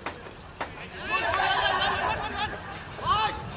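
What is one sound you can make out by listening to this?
Several young men shout excitedly outdoors.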